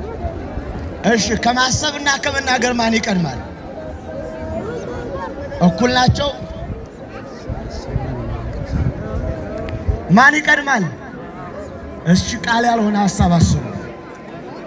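Voices in the crowd chant loudly in bursts.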